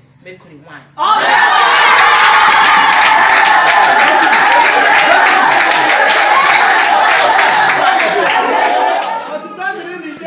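A crowd of women and men chatter loudly all at once in an echoing hall.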